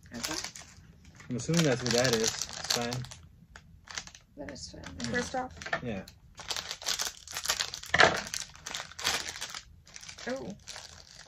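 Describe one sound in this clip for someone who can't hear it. Plastic wrappers crinkle and rustle.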